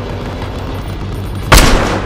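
An explosion bursts as a helicopter is hit.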